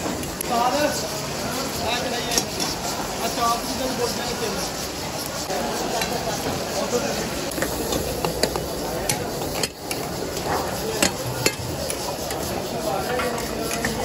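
Food sizzles in hot woks.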